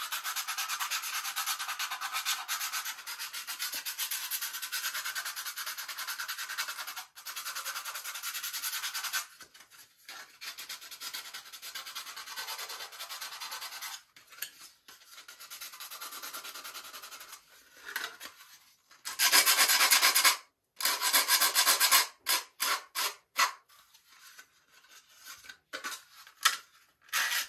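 Sandpaper rubs back and forth on a plastic part.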